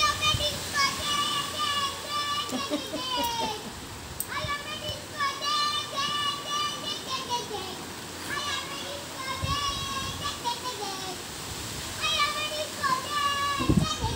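A young child sings in a high voice some distance away.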